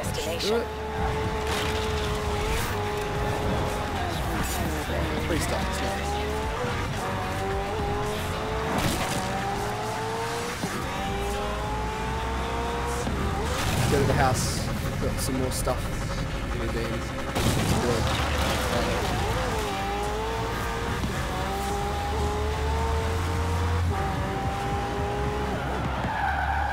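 A racing car engine roars and climbs in pitch through repeated gear changes.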